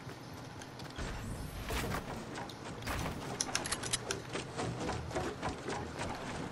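Wooden walls and ramps are rapidly built with sharp knocks.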